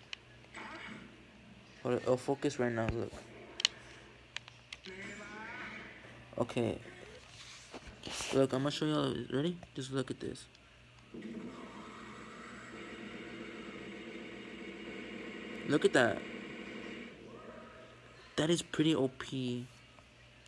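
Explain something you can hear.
Video game music plays from a television speaker.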